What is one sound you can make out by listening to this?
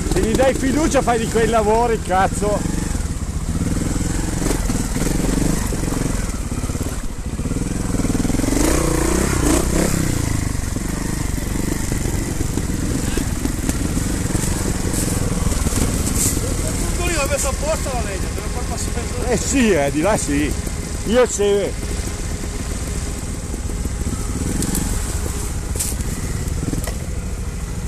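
A trials motorbike engine runs and revs close by.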